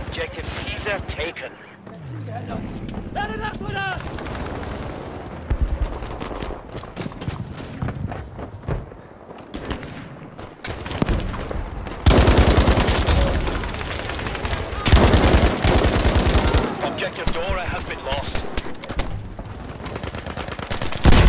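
Rifle shots crack loudly and echo.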